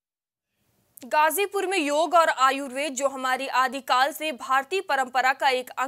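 A young woman reads out the news calmly and clearly into a microphone.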